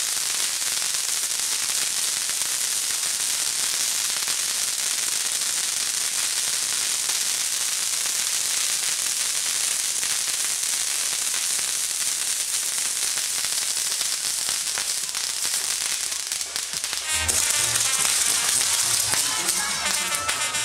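Fireworks hiss and fizz loudly as sparks spray from spinning wheels.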